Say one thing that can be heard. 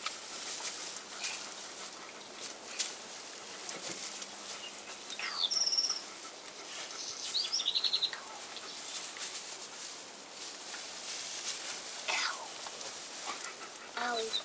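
Straw rustles as puppies move about.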